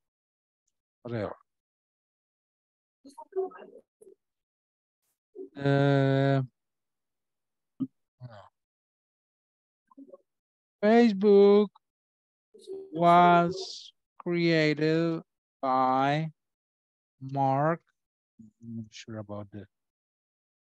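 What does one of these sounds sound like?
A man speaks slowly and deliberately over an online call, with long pauses.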